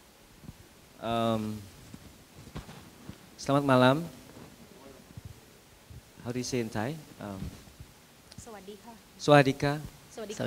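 A man speaks into a microphone in short, drawn-out phrases, with pauses between them.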